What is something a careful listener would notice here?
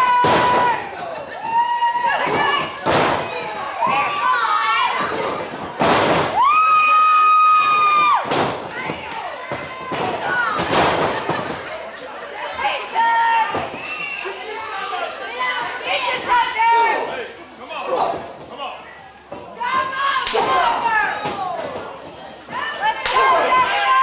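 Wrestlers' bodies slam onto a wrestling ring's canvas.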